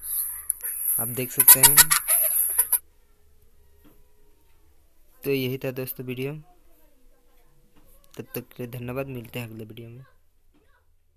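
A young girl speaks in short bursts through a small speaker.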